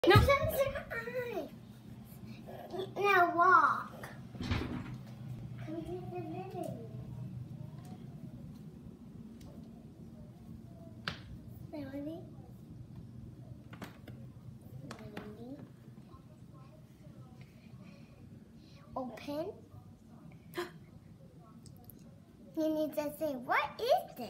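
A young girl talks and sings excitedly close by.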